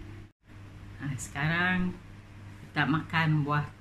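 An elderly woman talks calmly close by.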